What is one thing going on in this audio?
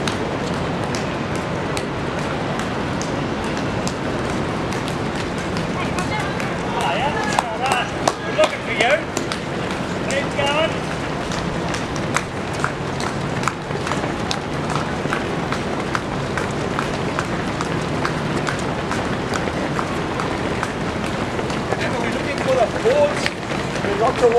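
Many runners' footsteps patter on the road.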